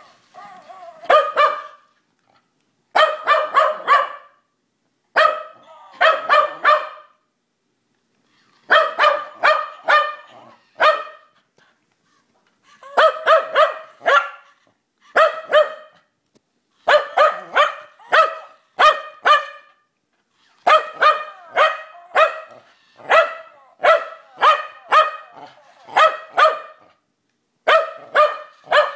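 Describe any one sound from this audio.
A Welsh terrier barks in short bursts.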